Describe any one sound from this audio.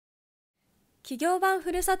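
A young woman speaks clearly into a microphone, like a presenter.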